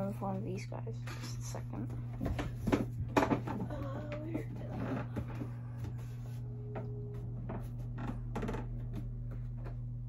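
Clothes rustle and things knock close by.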